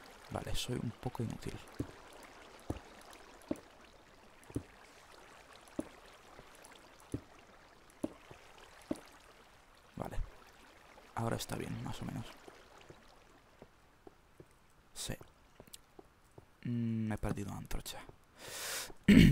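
Footsteps thud on stone at a steady walking pace.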